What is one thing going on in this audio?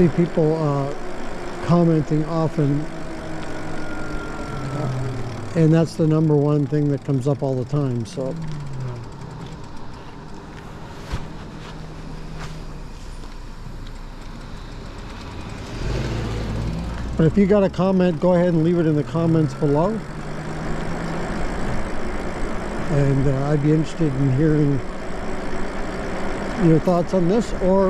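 Tyres hum along the pavement.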